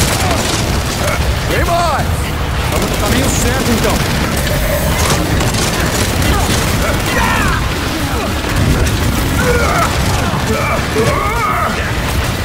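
Heavy explosions boom and rumble nearby.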